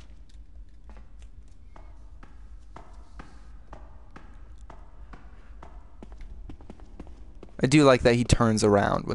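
Footsteps thud on a hard stone floor.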